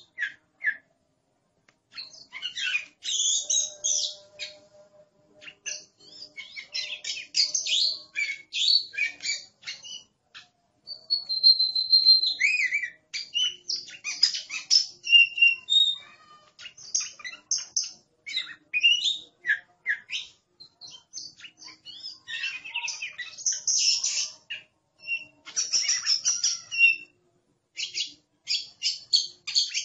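A songbird sings a varied, warbling song of whistles and chirps close by.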